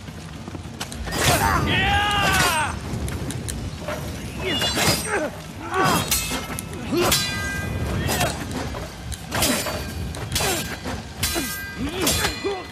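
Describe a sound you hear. Heavy blows land with sharp thuds.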